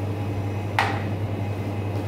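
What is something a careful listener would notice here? A metal bowl clanks once on a counter.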